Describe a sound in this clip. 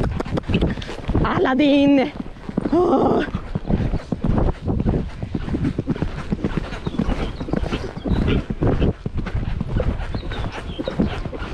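A horse's hooves thud steadily on soft sand at a trot.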